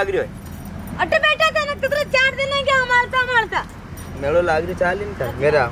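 A young woman sings in a high voice nearby.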